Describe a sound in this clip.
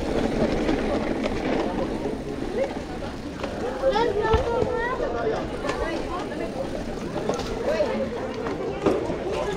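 Bicycle tyres roll over dirt and dry leaves.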